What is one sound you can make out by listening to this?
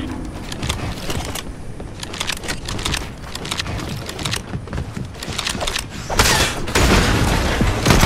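Wooden building pieces clatter into place.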